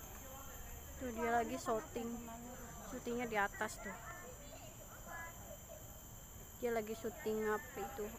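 Children call out and shout playfully a short way off.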